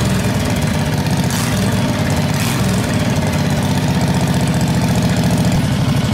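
A small engine idles loudly with a rapid, steady putter close by.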